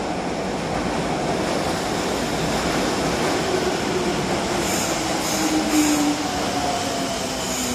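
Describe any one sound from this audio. Train brakes squeal as the train slows to a stop.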